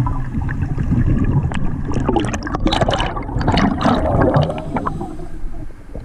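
Air bubbles gurgle and burble underwater.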